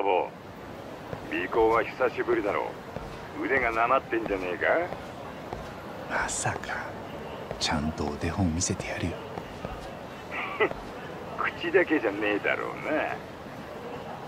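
A man talks on a phone in a calm voice.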